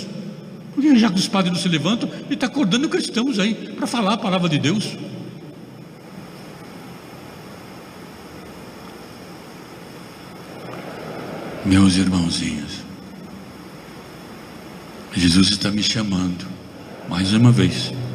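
An elderly man speaks with animation into a microphone, with pauses.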